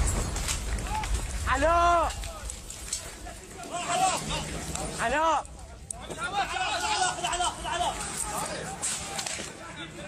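Men shout loudly nearby.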